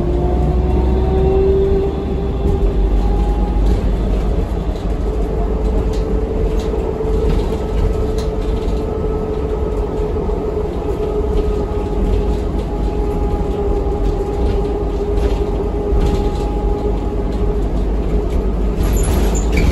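A bus engine hums and whines steadily from inside the bus.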